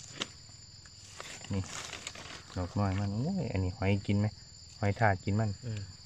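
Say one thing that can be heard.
A knife scrapes dirt off a mushroom stem.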